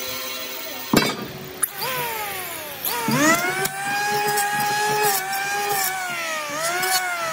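An electric hand planer whines as it spins up and winds down.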